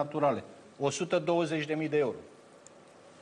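A middle-aged man speaks emphatically into a microphone.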